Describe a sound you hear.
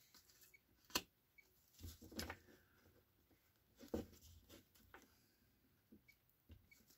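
Playing cards riffle and tap as they are shuffled.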